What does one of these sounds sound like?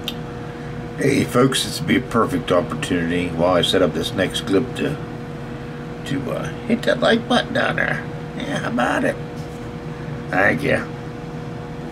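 An elderly man talks calmly and close up.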